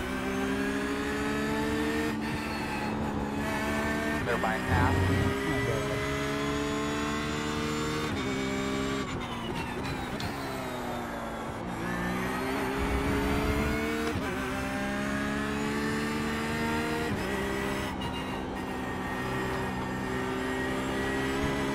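A race car engine roars loudly, rising in pitch as it speeds up and dropping with each gear change.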